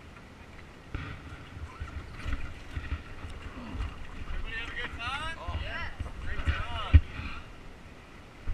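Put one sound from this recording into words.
Rafters splash through shallow water.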